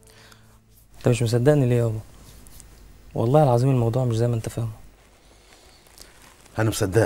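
A man sings a slow, wavering melody close by.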